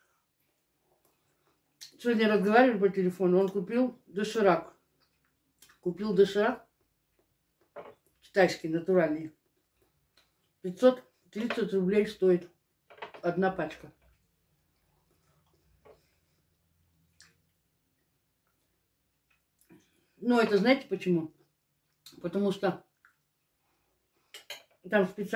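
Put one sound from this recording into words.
A fork clinks against a plate.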